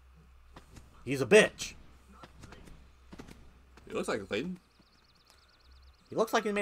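A young man speaks in surprise.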